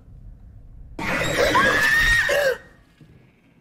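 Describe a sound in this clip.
A young woman screams loudly into a microphone.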